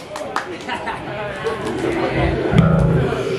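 An electric guitar rings out loudly through an amplifier.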